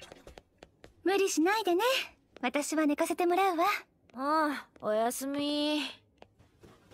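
A young woman says good night gently.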